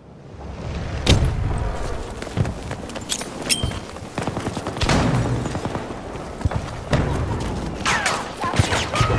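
Footsteps run on a hard floor.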